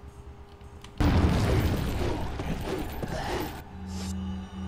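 A creature growls and snarls up close.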